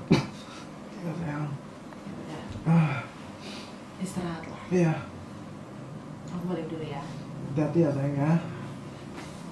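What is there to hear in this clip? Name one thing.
A young man talks sleepily and close by.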